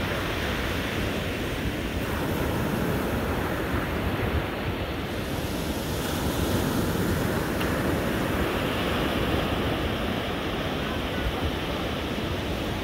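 Ocean waves break and wash steadily onto a beach.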